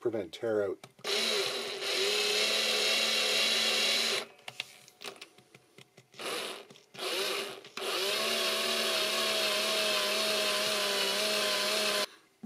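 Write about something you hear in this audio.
A power drill whirs steadily, stopping and starting.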